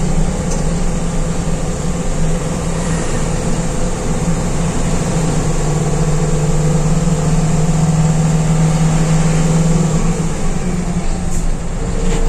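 Tyres roll over a road with a steady rumble.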